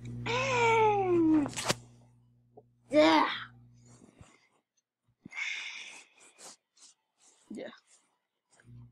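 A boy talks with animation close to a headset microphone.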